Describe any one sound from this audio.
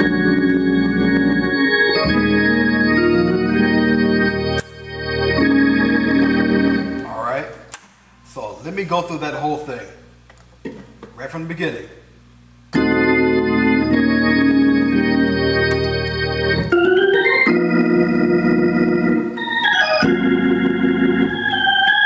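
An organ plays full, sustained chords.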